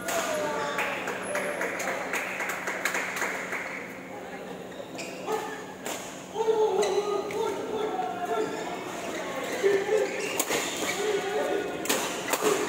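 Voices of men chatter in a large echoing hall.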